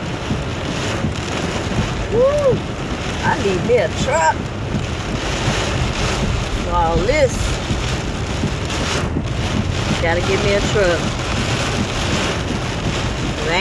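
Windshield wipers sweep back and forth with a soft thump.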